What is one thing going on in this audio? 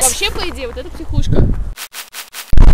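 A young woman talks with animation outdoors.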